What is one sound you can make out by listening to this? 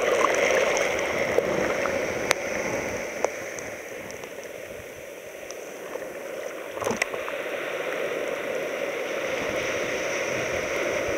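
Waves break and wash over a pebbly shore, close by.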